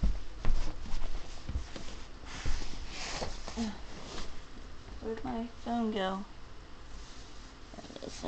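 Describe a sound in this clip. Clothing rustles and bumps against a microphone.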